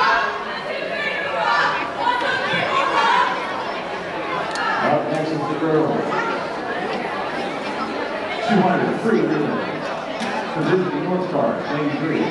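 A crowd of people chatters and calls out in a large echoing hall.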